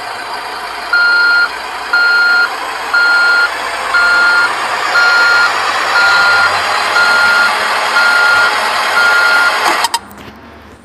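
A reversing alarm beeps steadily.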